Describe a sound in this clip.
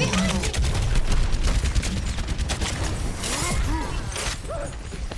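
A game weapon fires in rapid bursts.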